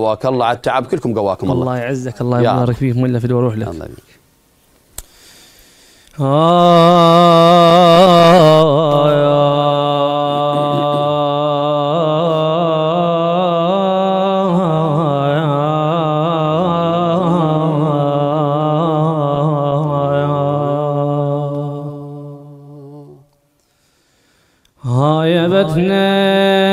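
A young man chants in long, wavering sung phrases into a microphone, pausing between phrases.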